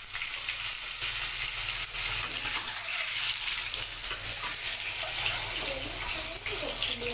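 Eggs sizzle and crackle in hot oil.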